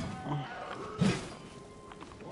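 A metal axe strikes stone with a sharp clang.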